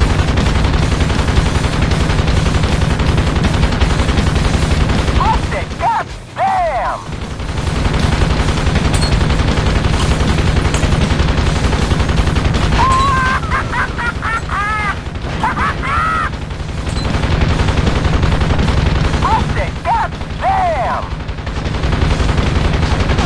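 A helicopter's rotor thumps steadily and loudly.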